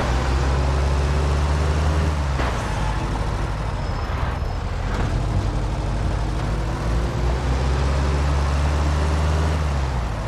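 Tyres hiss on a wet, snowy road.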